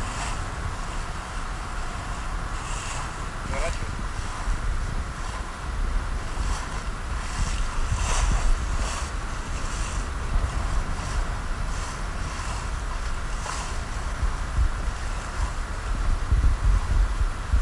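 Choppy water splashes against an inflatable boat's hull as the boat moves along.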